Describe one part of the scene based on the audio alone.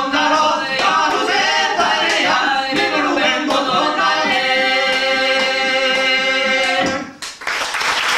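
Several men sing together through a microphone.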